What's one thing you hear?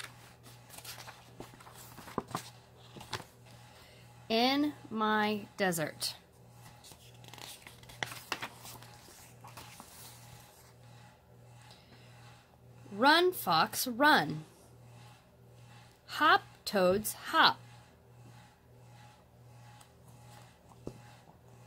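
Paper pages rustle as a book's pages are turned.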